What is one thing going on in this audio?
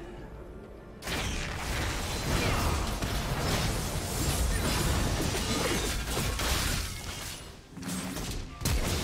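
Characters clash with rapid hits and impacts.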